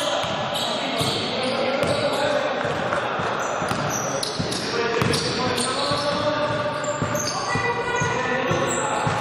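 A basketball bounces on the floor with dull thuds.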